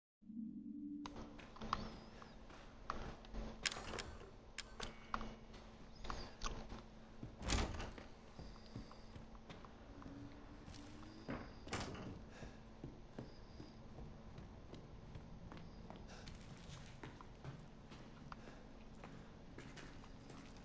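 Footsteps thud on a creaky wooden floor.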